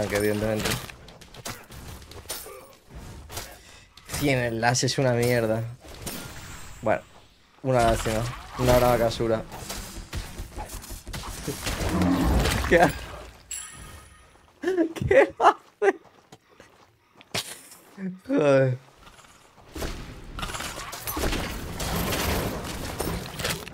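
Game sound effects of spells and hits burst out.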